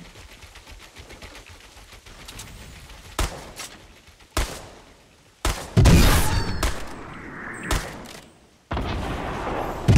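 Wooden building pieces snap into place with sharp knocks.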